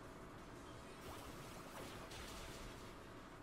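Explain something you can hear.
A video game sound effect whooshes softly.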